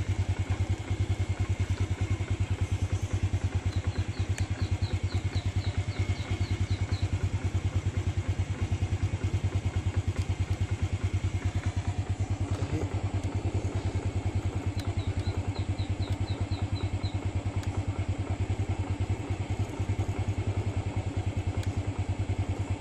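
A motorbike engine idles with a rapid, steady putter close by.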